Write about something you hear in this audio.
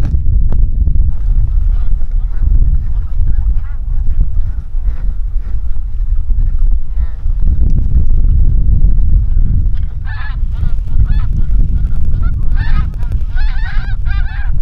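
Geese honk overhead as a flock flies by.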